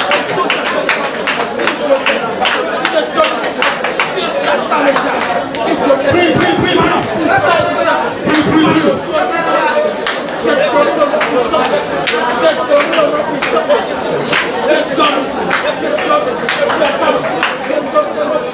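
Hands clap in a steady rhythm.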